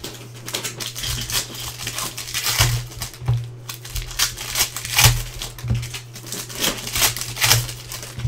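A foil card pack crinkles and rustles as hands handle it.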